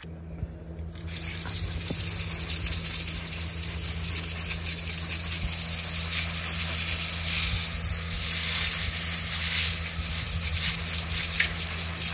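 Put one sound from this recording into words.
A pressure washer sprays water onto rocks with a loud hiss.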